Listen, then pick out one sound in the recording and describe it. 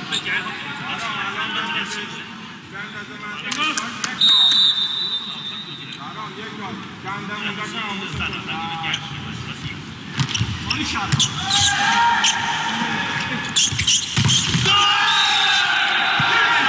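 A volleyball is struck hard with a sharp smack.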